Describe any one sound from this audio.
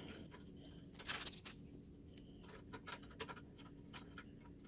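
A hex key clicks faintly against a metal bolt.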